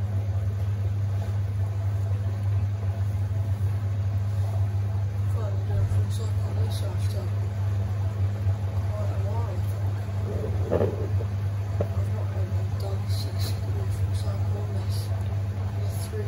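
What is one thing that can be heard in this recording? Laundry thumps and swishes softly inside a turning drum.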